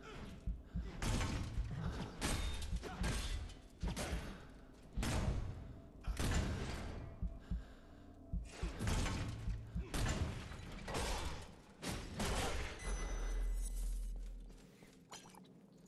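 Metal weapons clash and strike with sharp impacts.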